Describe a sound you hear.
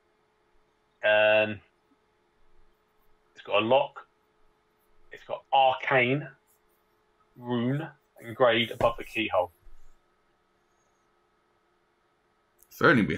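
A man speaks with animation over an online call, in short bursts.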